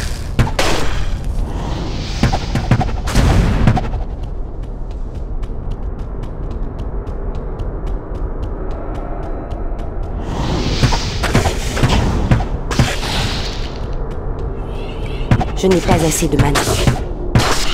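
Electric spells crackle and zap.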